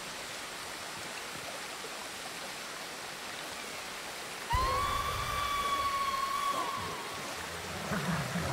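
Wind blows steadily across open grassland.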